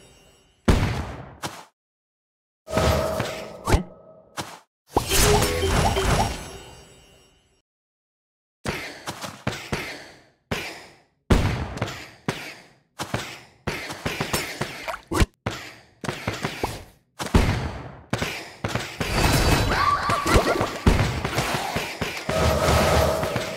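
Game sound effects of magic attacks and hits burst out again and again.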